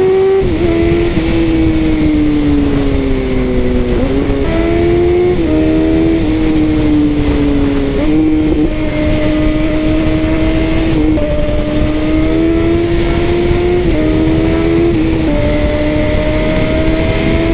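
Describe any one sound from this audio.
A motorcycle engine roars steadily at speed, its pitch dropping and jumping as gears shift.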